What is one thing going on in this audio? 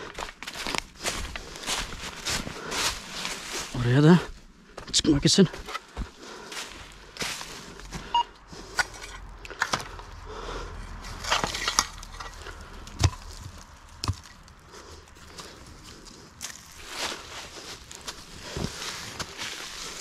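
Dry leaves crunch and rustle underfoot.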